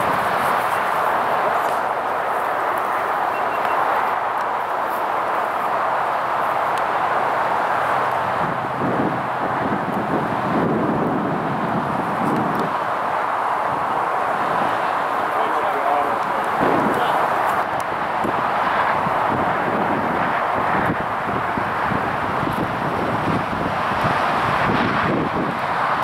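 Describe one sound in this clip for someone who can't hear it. Strong gusty wind roars and buffets the microphone outdoors.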